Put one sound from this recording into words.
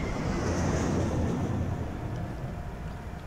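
A smoke grenade hisses loudly close by.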